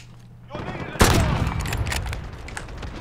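A bolt-action sniper rifle fires with a sharp crack that echoes away.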